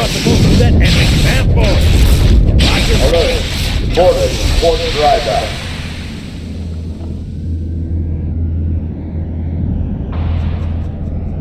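An electric weapon crackles and buzzes in short bursts.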